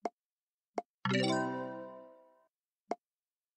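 A bright chiming jingle plays as a level is completed.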